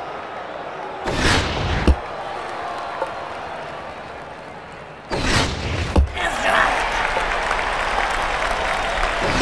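A stadium crowd cheers and roars in waves.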